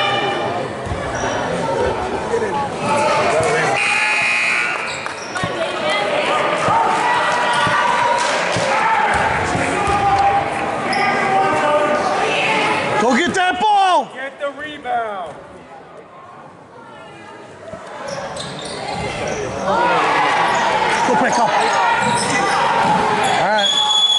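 Children and adults talk and shout in a large echoing gym.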